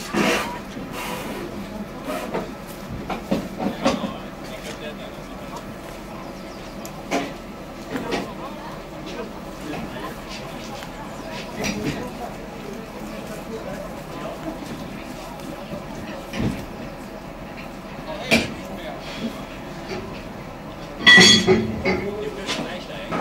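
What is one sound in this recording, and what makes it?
Train wheels clack and knock over the rails.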